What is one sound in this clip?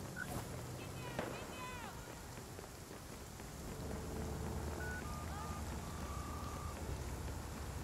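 Footsteps patter quickly on wet pavement.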